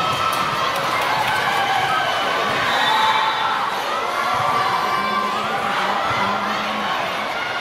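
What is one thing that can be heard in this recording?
A crowd chatters and cheers in a large echoing hall.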